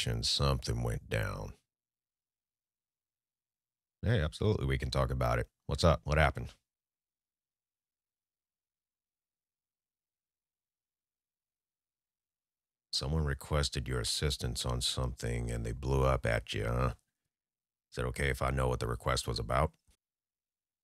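A young man speaks close into a microphone, in short bursts with long silences between.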